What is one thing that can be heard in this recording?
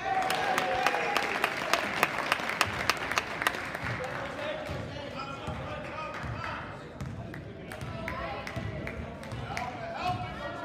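Spectators murmur and call out in the stands.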